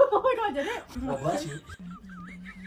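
A young man talks with surprise.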